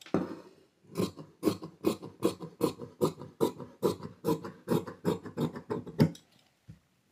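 Scissors snip through cloth in quick, regular cuts.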